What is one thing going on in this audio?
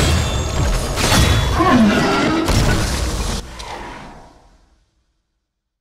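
Metal weapons clash and strike.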